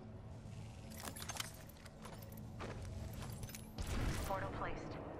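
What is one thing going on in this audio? Game menu clicks sound as items are selected.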